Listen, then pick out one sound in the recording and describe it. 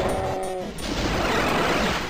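A rocket explodes with a heavy boom.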